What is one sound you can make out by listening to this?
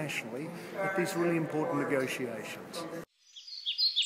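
A man speaks calmly close up.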